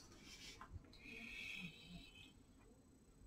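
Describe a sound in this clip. A paintbrush swishes and clinks in a glass jar of water.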